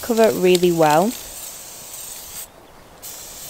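An aerosol spray can hisses in short bursts.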